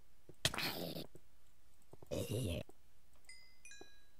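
A sword strikes a zombie.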